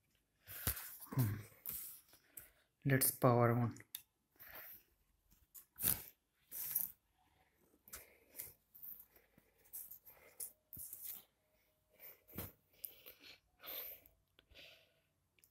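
Soft knocks and rustles come from a laptop being handled and moved.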